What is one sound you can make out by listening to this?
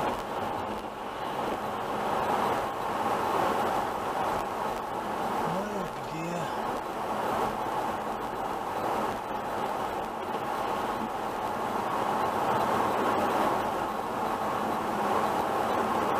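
A car drives steadily along a road, its tyres rumbling on asphalt.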